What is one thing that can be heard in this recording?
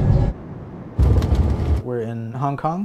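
A jet engine roars loudly.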